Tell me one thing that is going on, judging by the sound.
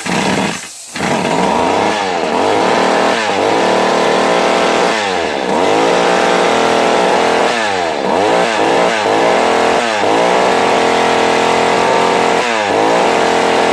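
A chainsaw engine idles and revs loudly and unevenly.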